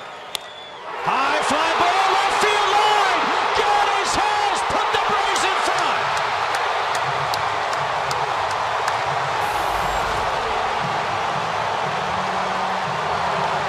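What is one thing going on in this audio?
A large crowd roars and cheers loudly in a big open stadium.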